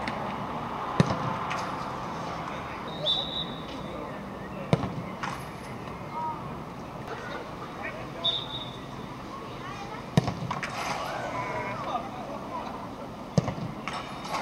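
A football is struck hard with a sharp thud.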